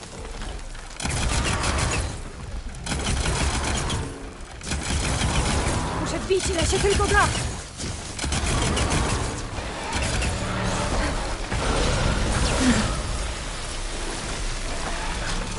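Energy weapons crackle and zap in bursts.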